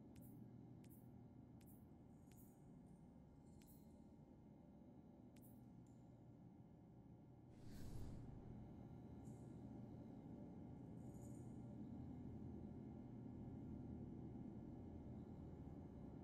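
A low steady hum drones in the background.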